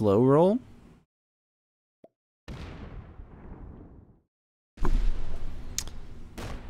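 Video game sound effects whoosh and ring.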